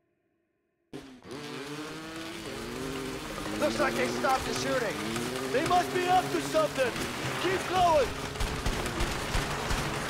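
A motorbike engine revs and whines.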